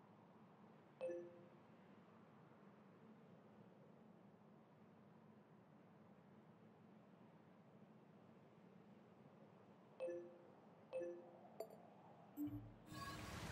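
Short electronic menu chimes blip now and then.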